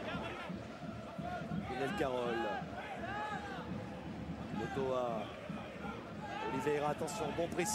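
A large stadium crowd roars and chants.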